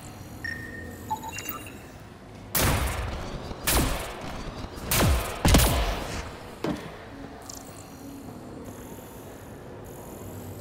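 An electronic scanner beeps and hums.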